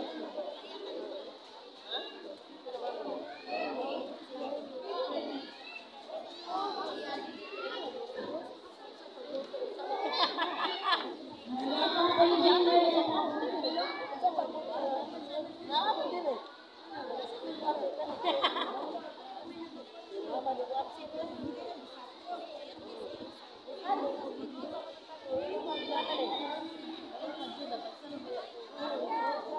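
A large crowd of children chatters all around, outdoors.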